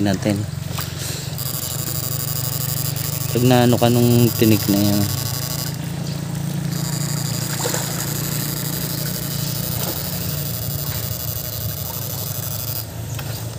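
Water splashes as someone wades slowly.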